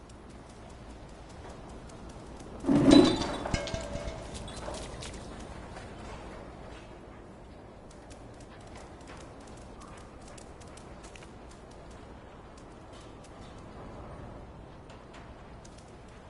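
A cat's paws patter softly on the ground.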